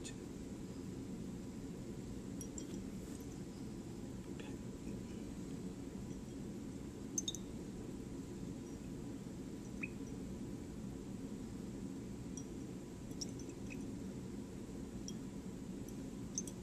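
Liquid swirls softly in a glass flask.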